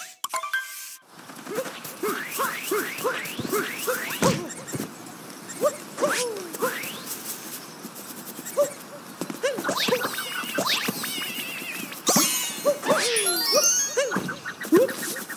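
Playful video game music plays with bouncy, sliding notes.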